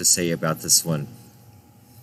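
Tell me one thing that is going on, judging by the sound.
An older man talks with animation, close to a microphone.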